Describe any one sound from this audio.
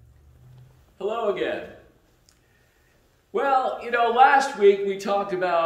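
A middle-aged man speaks clearly into a microphone with animation.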